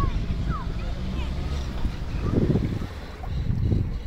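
Shallow water laps softly against rocks.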